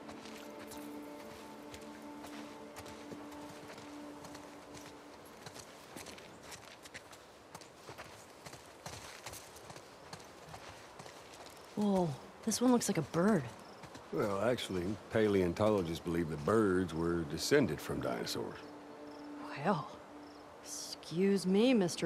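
Footsteps tread softly on grass and concrete.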